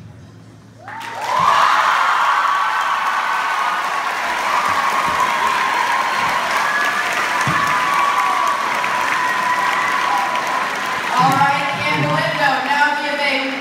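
An audience applauds and cheers loudly in a large echoing hall.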